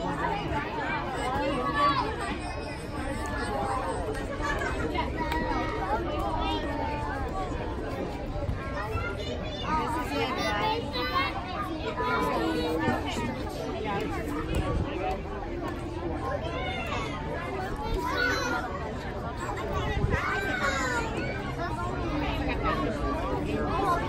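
Children shout excitedly nearby.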